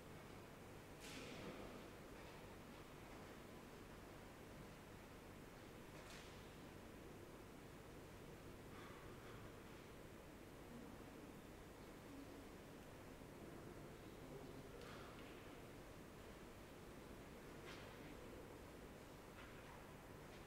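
Footsteps echo on a hard floor in a large, reverberant hall.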